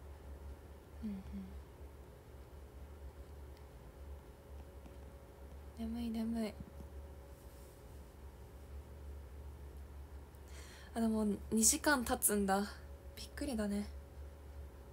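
A young woman speaks softly in short bursts, close to a microphone.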